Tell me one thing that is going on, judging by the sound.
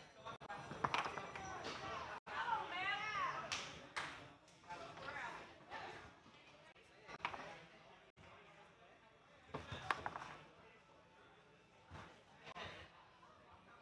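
Foosball rods rattle and thud as players spin and slide them.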